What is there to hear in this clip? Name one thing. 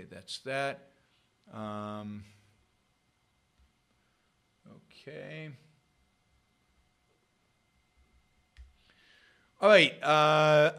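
An older man speaks calmly into a close microphone, in short bursts with pauses.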